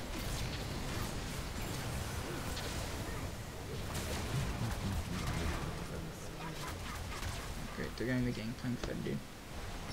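Fantasy game spells crackle and burst during a fight.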